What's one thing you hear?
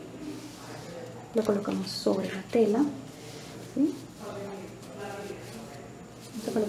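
Paper rustles softly as hands smooth it onto cloth.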